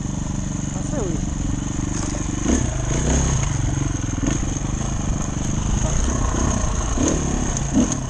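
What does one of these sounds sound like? A dirt bike engine revs and putters steadily close by.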